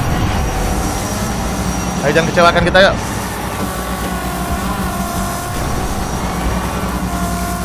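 A race car engine roars steadily.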